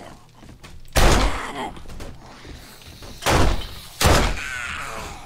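A pistol fires several loud shots close by.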